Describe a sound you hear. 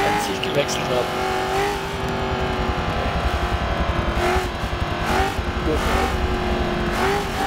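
Race car engines roar steadily at high revs.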